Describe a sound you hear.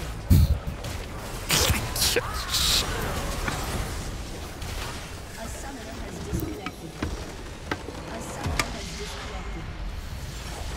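Spell blasts and magical whooshes burst in quick succession.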